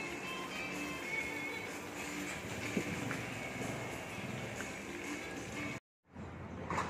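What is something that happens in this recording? Food sizzles and bubbles in a pot.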